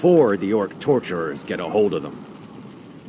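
A man speaks in a deep, calm voice.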